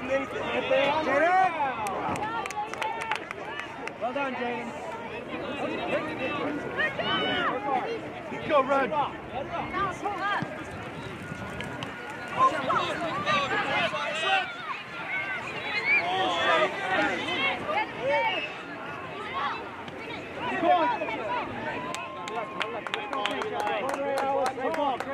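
Children and adults shout and cheer from the sidelines outdoors.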